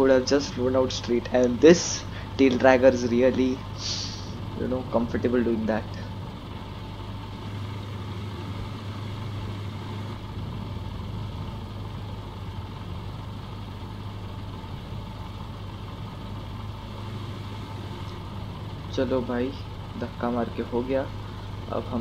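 A small propeller plane's engine idles with a steady low drone.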